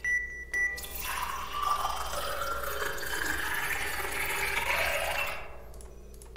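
A coffee machine whirs as it pours a drink.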